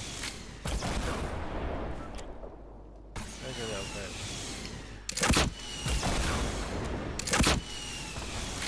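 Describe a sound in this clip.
Gunshots crack loudly in short bursts.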